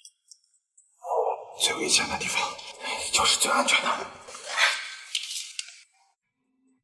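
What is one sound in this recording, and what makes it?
A man speaks in a low, measured voice close by.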